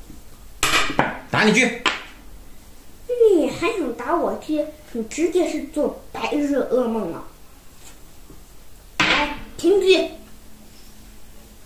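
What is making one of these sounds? A wooden game piece taps down on a board.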